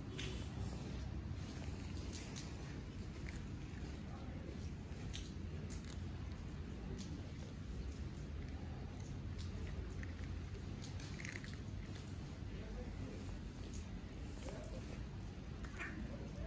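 Cats crunch dry food close by.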